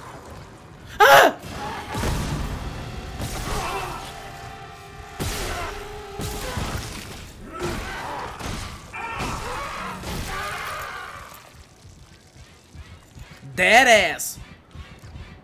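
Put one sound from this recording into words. A creature shrieks loudly.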